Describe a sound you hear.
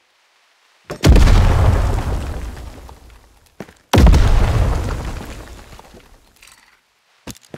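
A shotgun fires twice with loud booms that slowly echo away.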